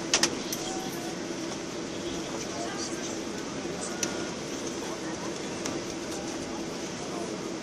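A jet airliner's engines hum steadily from inside the cabin as it taxis.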